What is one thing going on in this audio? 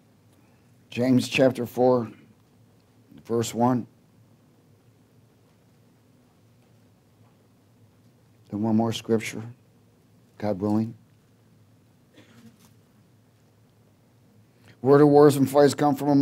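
A man speaks calmly into a headset microphone, in short phrases with pauses.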